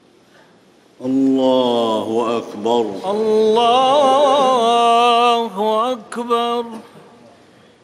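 A man chants a long melodic recitation through a loudspeaker in a large echoing hall.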